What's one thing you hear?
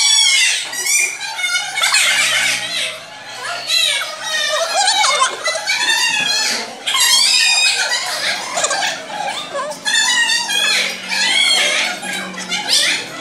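A young woman speaks to the children.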